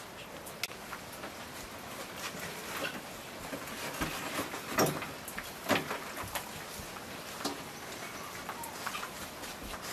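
Fresh leafy greens rustle as they are handled.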